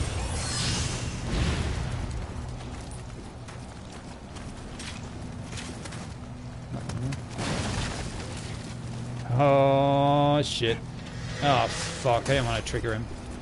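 Footsteps rustle through dry grass.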